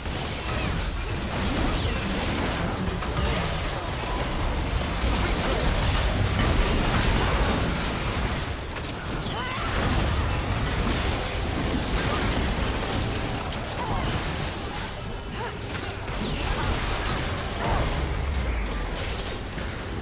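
Video game battle effects crackle, whoosh and clash in a busy fight.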